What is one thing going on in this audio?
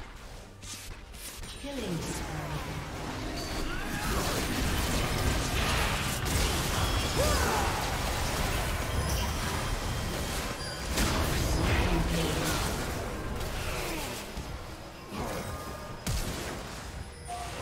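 Spell blasts, whooshes and hits from a fantasy battle game crackle and boom in quick succession.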